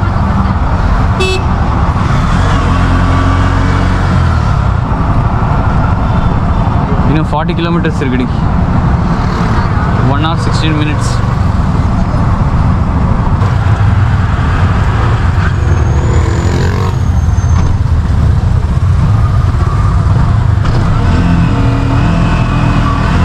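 Traffic passes on a busy street.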